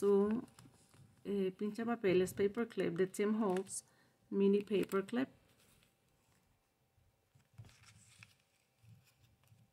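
Paper and twine rustle softly under busy hands.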